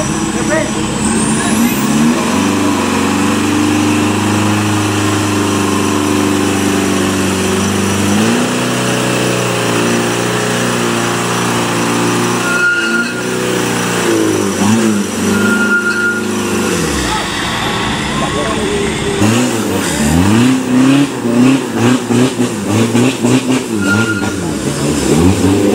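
Truck tyres churn and splash through thick mud.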